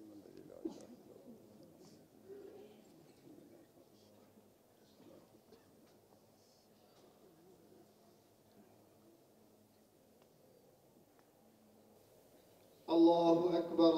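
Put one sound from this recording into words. A large crowd of men murmurs quietly outdoors.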